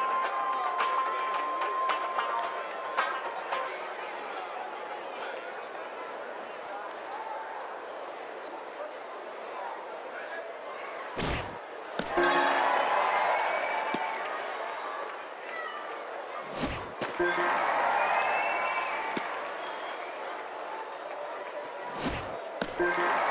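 A crowd cheers and murmurs throughout, swelling loudly now and then.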